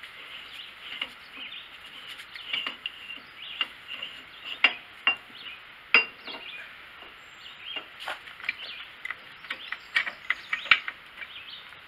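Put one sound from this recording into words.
Metal tools clink and knock against machinery.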